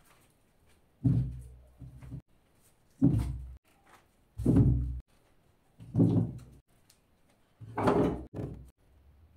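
Wooden logs thump down one by one onto a hard surface.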